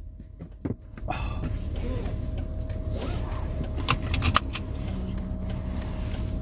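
A car engine rumbles steadily while driving.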